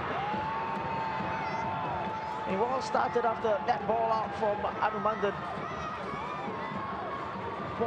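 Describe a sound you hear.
A large stadium crowd cheers and chants loudly outdoors.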